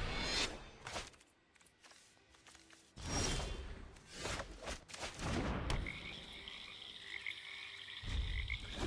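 Soft whooshing game sound effects play.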